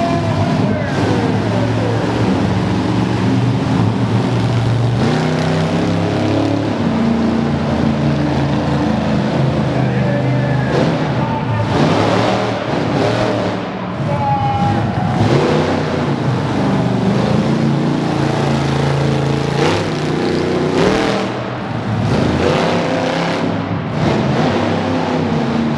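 A monster truck engine roars and revs loudly in a large arena.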